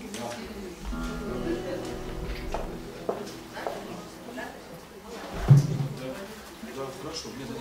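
An acoustic guitar is strummed and tuned.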